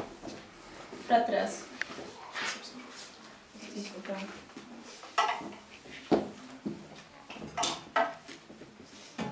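A woman talks quietly nearby.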